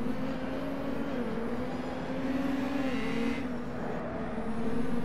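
A racing car engine drones steadily at high revs, its pitch dipping and rising through the corners.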